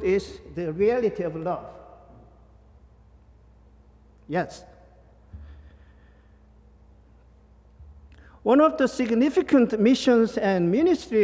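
A man speaks with animation into a microphone, in a reverberant hall.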